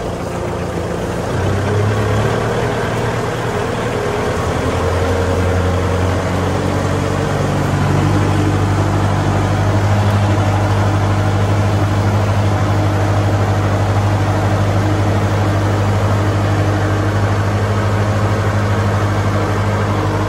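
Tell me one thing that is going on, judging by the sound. Disc plough blades churn and splash through wet mud.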